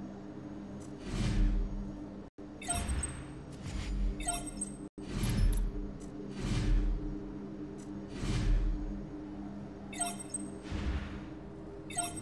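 Soft interface whooshes and blips sound now and then.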